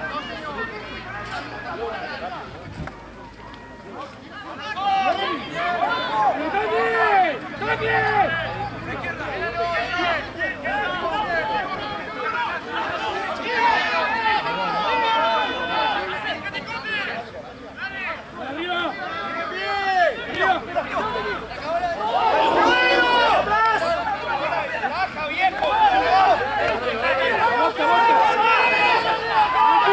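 Young men shout to each other across an outdoor sports field.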